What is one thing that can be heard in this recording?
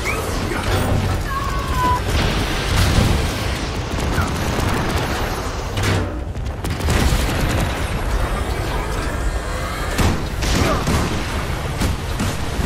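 Energy blasts zap and whoosh.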